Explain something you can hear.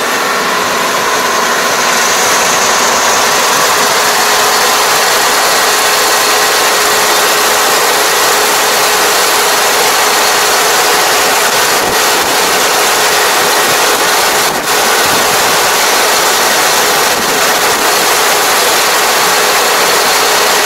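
A combine harvester's engine drones steadily close by.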